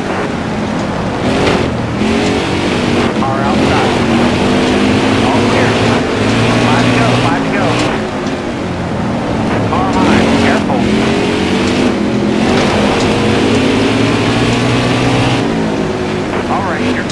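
A race car engine roars loudly, revving up and down through the gears.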